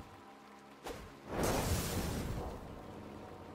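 A fiery explosion bursts with a loud roar.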